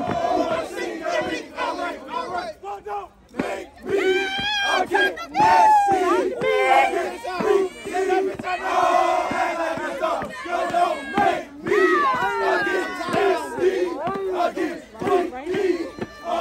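A crowd of young people cheers and shouts nearby.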